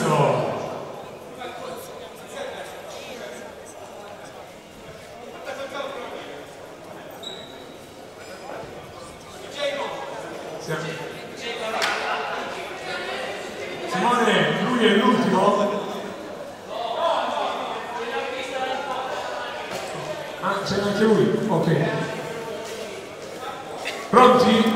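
A man talks with animation over a loudspeaker.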